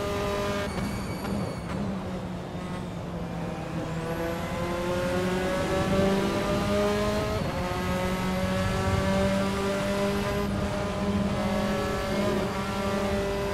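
A racing car engine roars, rising in pitch through each gear and dropping at each gear change.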